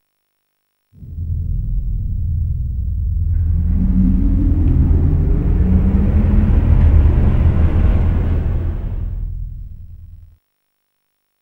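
A heavy lift rumbles and whirs as it drops down a shaft.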